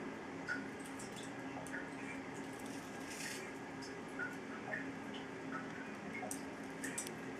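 A plastic fishing lure rattles softly as a hand turns it.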